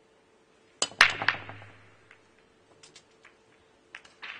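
Snooker balls crack together and click around the table.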